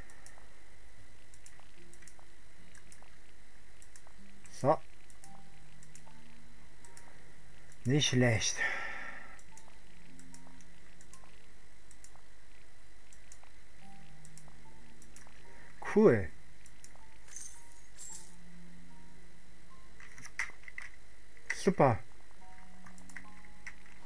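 Short electronic blips sound softly as menu items are selected.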